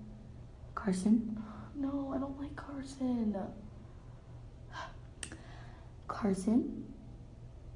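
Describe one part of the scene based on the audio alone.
A young girl speaks close by with animation.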